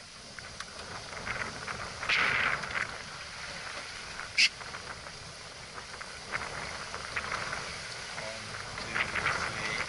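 Water splashes and rushes against the hull of a small boat.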